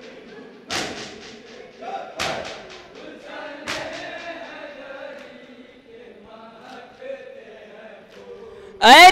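A young man chants through a microphone.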